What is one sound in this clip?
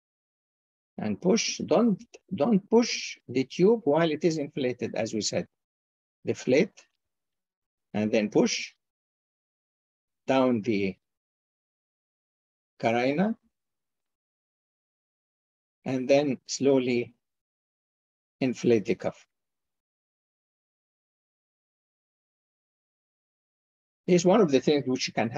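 A man talks calmly in short phrases with pauses, heard through an online call.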